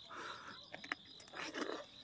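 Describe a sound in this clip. A woman bites into a peach.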